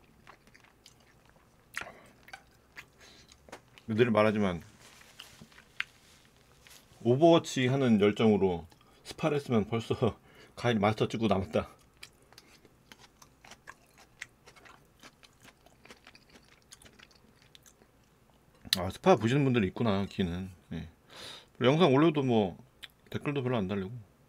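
Chopsticks and a spoon clink against dishes.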